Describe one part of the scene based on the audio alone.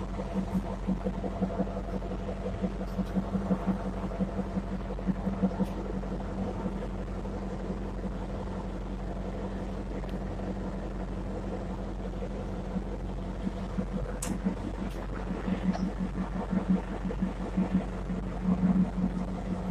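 A diesel locomotive engine rumbles and hums steadily.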